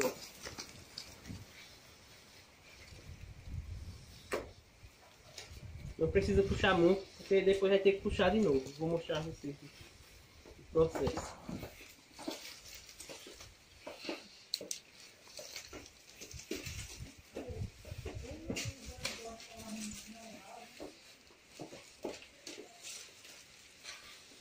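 Stiff palm leaves rustle and crackle as hands weave them.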